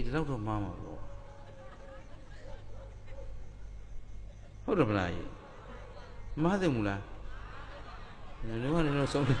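A middle-aged man speaks with animation in short bursts, heard through a microphone.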